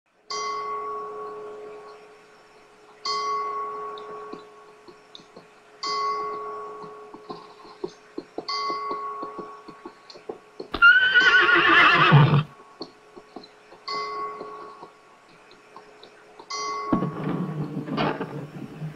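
An acoustic guitar plays chords that ring out and fade.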